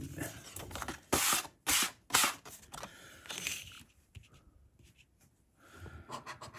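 A paper card rustles as it is handled.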